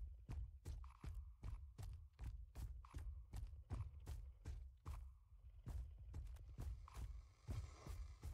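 Footsteps thud quickly and steadily, as someone runs.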